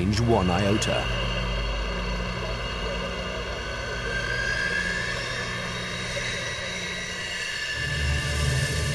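A jet engine whines steadily.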